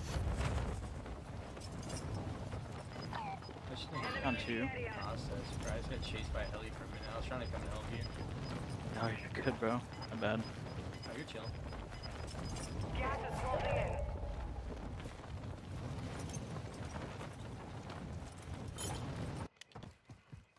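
Wind rushes steadily past a parachute in flight.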